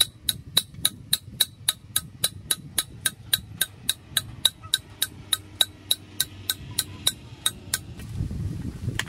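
A machete chops a wooden stick in quick, even strokes.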